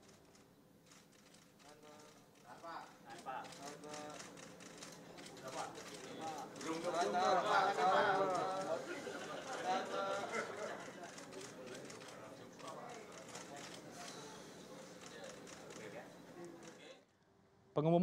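Several adults talk at once in a room nearby.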